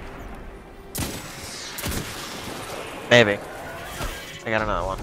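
A pistol fires sharp shots.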